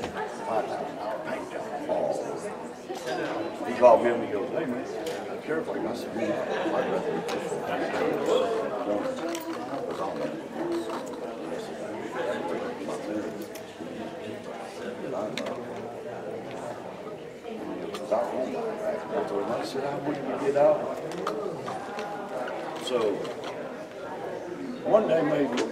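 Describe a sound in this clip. Several adult men and women chat with one another in a large, echoing hall.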